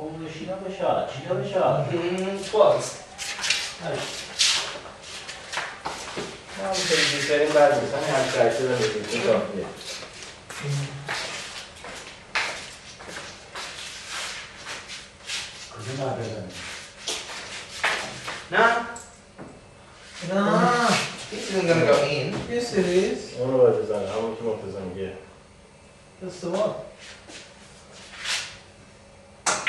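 Pool balls click together on a table.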